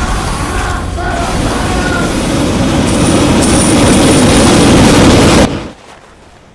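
Loud explosions and roaring flames rumble without pause, then cut off abruptly.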